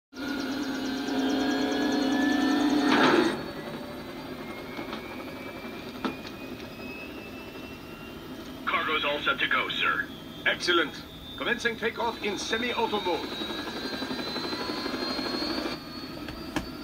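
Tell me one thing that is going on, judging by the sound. A helicopter engine hums steadily, slowly rising in pitch.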